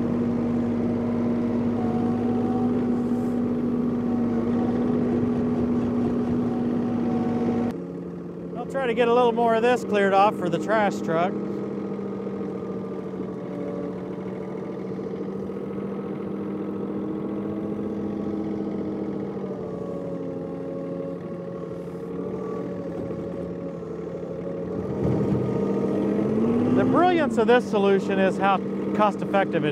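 A small tractor engine runs steadily nearby.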